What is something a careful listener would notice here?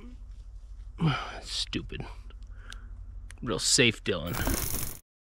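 A man speaks up close, with animation.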